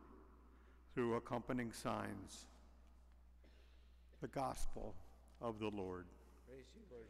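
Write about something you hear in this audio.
An elderly man speaks slowly into a microphone in a large echoing room.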